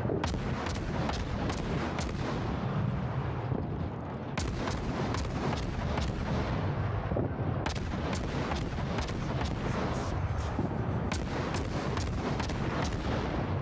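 Naval guns fire in rapid bursts.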